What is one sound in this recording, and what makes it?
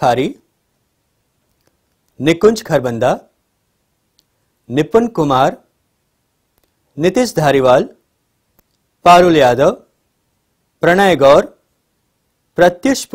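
A man reads out names one at a time through a microphone, with short pauses between them.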